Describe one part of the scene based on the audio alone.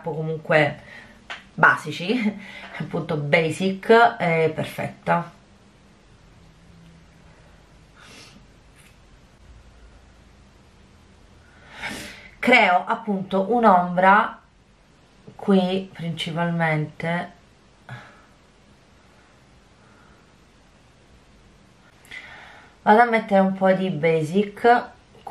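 A woman talks calmly and closely into a microphone, pausing now and then.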